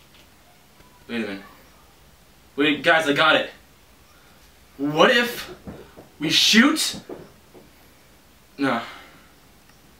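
A young man talks nearby in short bursts.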